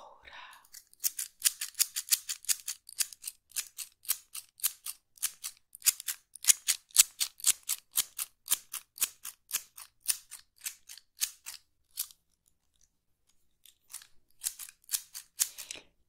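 Scissors snip open and shut in quick, crisp clicks close by.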